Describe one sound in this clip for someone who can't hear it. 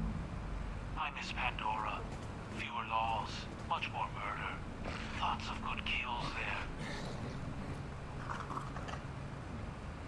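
A man speaks calmly at close range.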